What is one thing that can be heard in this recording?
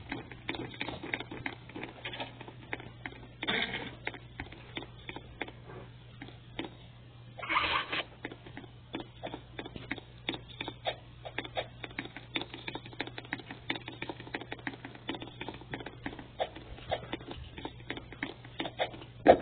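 Quick footsteps patter as a game character runs.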